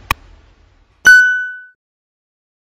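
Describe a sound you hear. A small bell chimes and rings out briefly.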